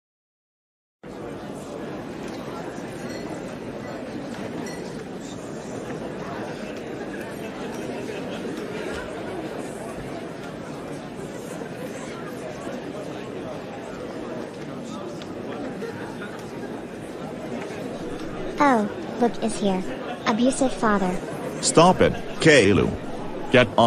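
A crowd chatters steadily in a busy, echoing room.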